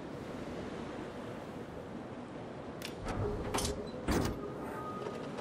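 Water rushes steadily past a ship's hull.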